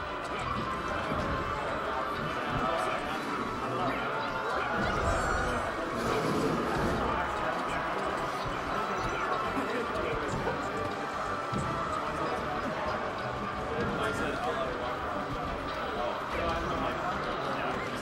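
Video game fight sounds of punches and hits play.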